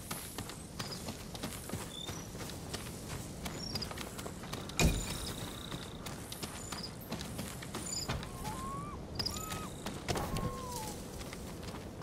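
Birds call outdoors.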